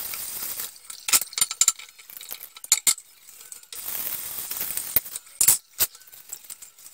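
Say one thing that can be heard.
Dishes clatter and clink against each other.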